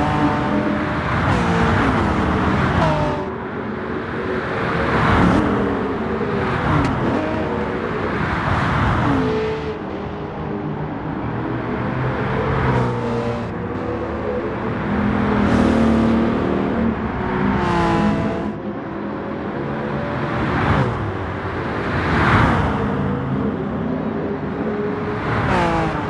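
Racing car engines roar and rev up and down throughout.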